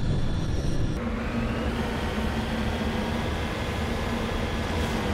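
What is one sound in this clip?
A vehicle engine hums steadily.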